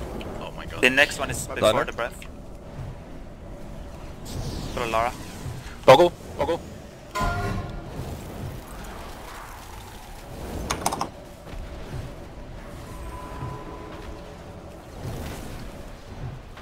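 Game spell effects whoosh and chime in short bursts.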